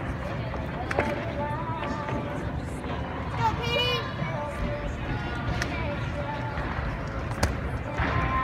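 A gymnast's hands and feet thud on a balance beam.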